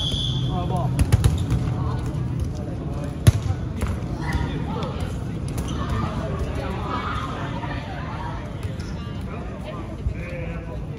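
Balls thud and bounce on a hard floor in an echoing hall.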